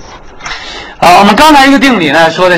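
A man speaks loudly and clearly, close to a microphone.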